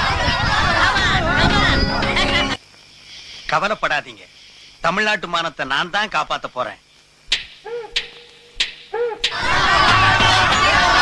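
A group of young men shout and cheer excitedly.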